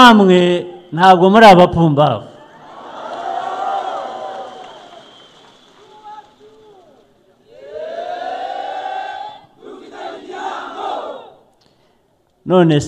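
A man shouts with animation through a microphone and loudspeakers.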